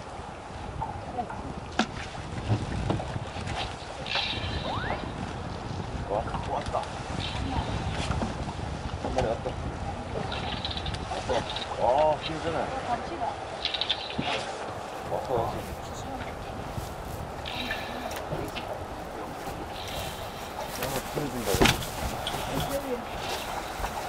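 Men talk with animation nearby.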